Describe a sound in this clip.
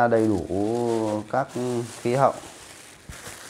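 A man speaks loudly and clearly, close by.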